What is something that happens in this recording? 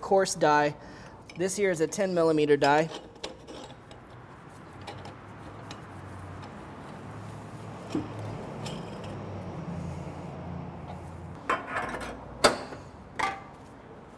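Metal parts clink as a grinder plate is fitted.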